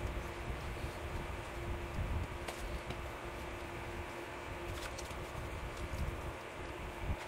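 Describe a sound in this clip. A cloth wipes and squeaks across a glass surface.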